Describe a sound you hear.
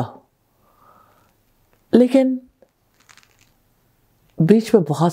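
A woman speaks calmly and closely into a microphone, with pauses.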